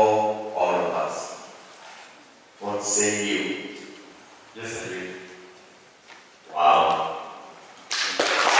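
A man speaks slowly into a microphone in short phrases.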